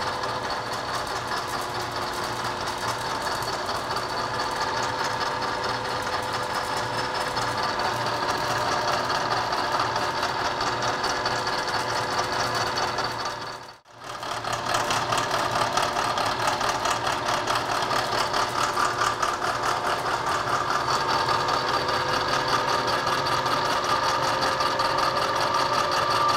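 A milling machine whirs and grinds steadily through metal.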